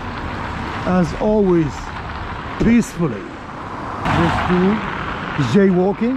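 A car drives past on a wet road, its tyres hissing.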